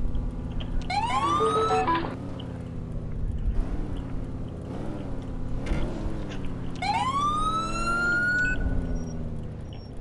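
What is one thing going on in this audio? Car tyres screech.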